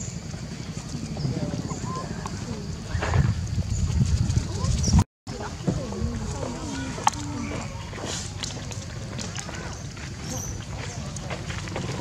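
A small monkey patters across sandy ground.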